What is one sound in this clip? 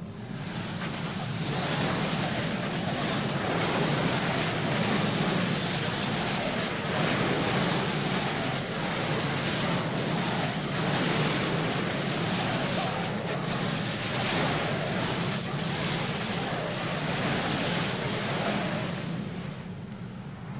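Weapons clash and spells burst in a fast game battle.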